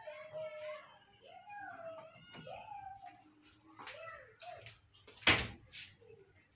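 A refrigerator door thumps shut.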